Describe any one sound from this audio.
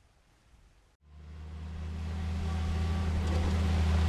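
A vehicle engine rumbles low and grows louder as it approaches.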